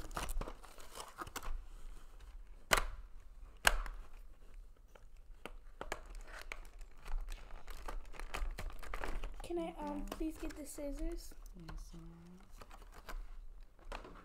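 Plastic packaging crackles under fingers.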